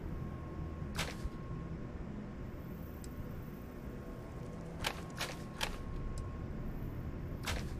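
Short soft clicks sound as menu entries are switched.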